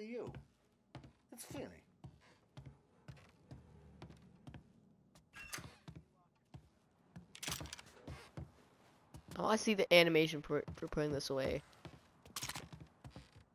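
Footsteps thud on wooden boards and stairs.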